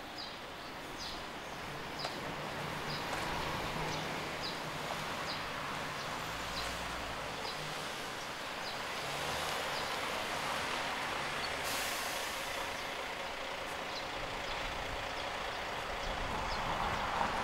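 A bus engine rumbles as the bus turns slowly nearby.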